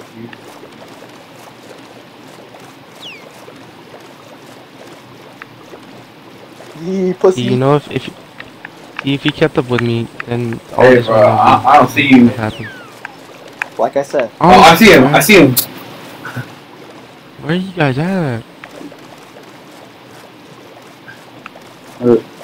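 Oars splash softly as a boat moves across water.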